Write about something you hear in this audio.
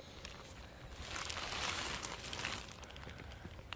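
Leaves rustle softly under a hand.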